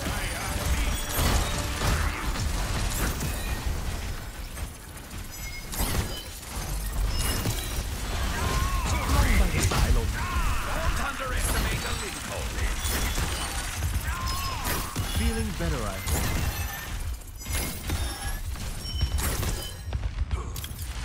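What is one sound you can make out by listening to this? Explosions and impacts crackle and boom.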